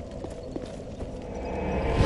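A bonfire crackles softly.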